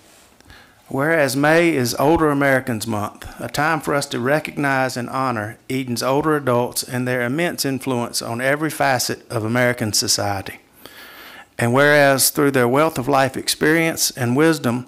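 A middle-aged man speaks calmly into a microphone, reading out.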